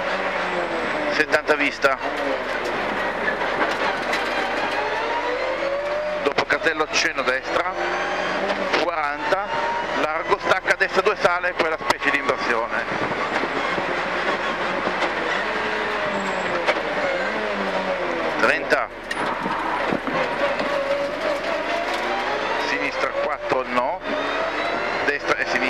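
A man reads out notes quickly over an intercom.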